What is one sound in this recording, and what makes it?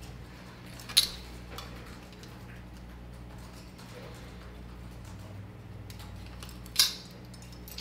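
Metal rings clink softly as they are handled.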